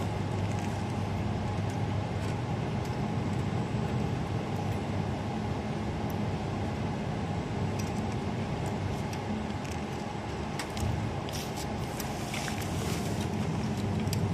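Hands fiddle with parts inside a computer case, making small clicks and scrapes.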